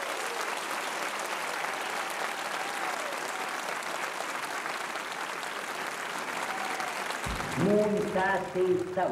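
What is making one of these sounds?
A large audience applauds loudly in a big echoing hall.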